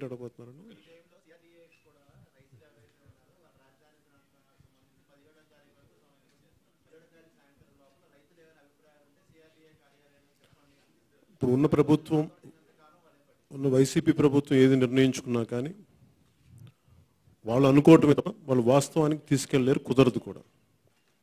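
A man speaks calmly into a microphone over a loudspeaker, with pauses.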